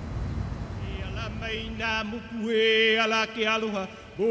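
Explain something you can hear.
A man speaks cheerfully close by.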